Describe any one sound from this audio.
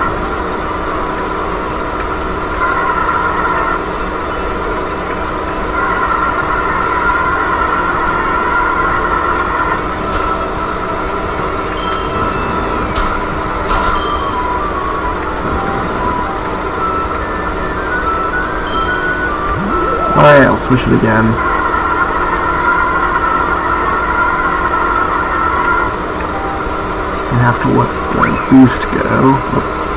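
A small kart engine hums steadily.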